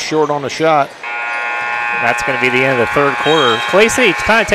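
A buzzer sounds loudly as the game clock runs out.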